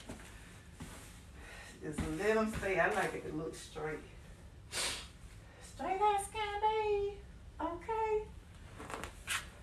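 Pillows thump softly onto a bed.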